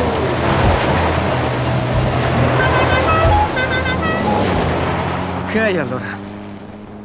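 A truck engine roars as it drives fast over gravel.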